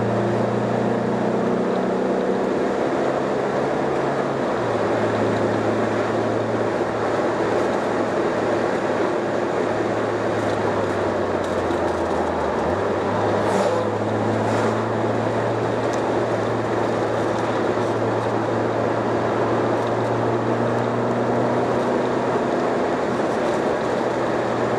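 Tyres roll over the road with a steady rushing noise.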